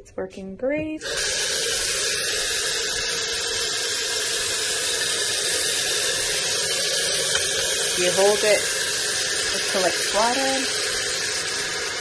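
Water streams from a tap and splashes into a sink.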